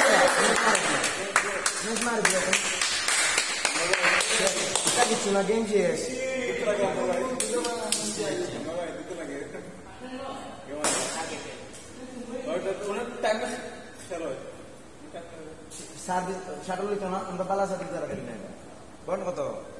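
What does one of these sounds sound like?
A young man talks nearby in a large echoing hall.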